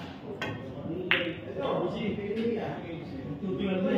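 Billiard balls clack together and roll across the table.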